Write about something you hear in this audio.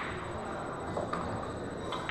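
A cue sharply strikes a pool ball.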